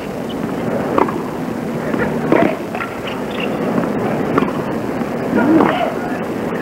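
Rackets strike a tennis ball back and forth.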